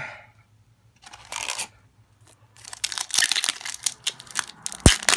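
Foil card wrapping crinkles and tears as hands open it.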